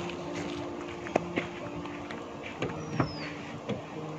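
A man's footsteps swish through grass.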